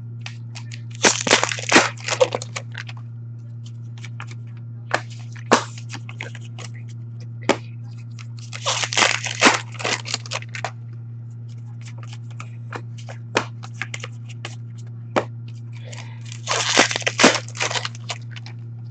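Playing cards are riffled by hand in quick bursts of rapid flicking.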